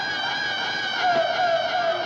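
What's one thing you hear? A woman screams in terror.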